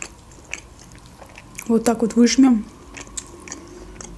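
A lemon wedge squelches as it is squeezed.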